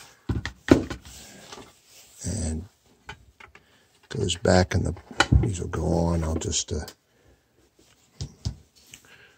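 A metal case rattles and clicks as hands handle it.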